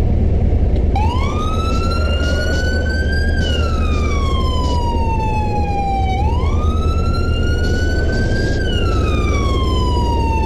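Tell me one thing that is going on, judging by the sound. A police siren wails up and down nearby.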